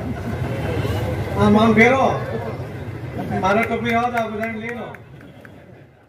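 A man gives a speech loudly through a microphone and loudspeakers, echoing outdoors.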